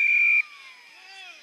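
An umpire's whistle blows a short sharp blast.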